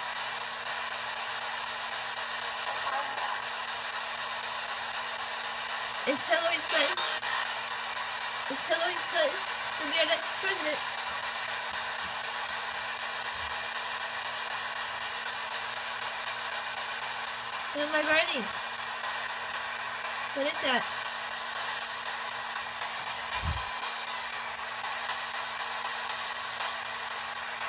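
A radio hisses with steady static.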